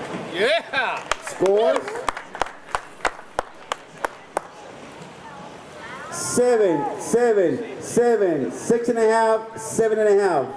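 A swimmer splashes with steady strokes.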